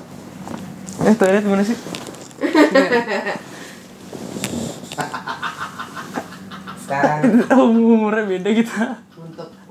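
A young man laughs loudly and heartily.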